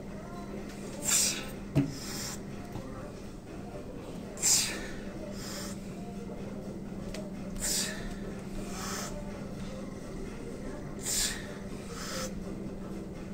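A young man breathes out forcefully with each push, then breathes in sharply.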